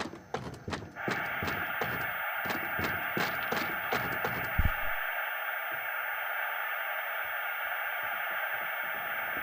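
A steady hiss of static comes from a television.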